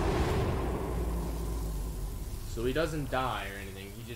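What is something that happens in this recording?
Flames roar and crackle nearby.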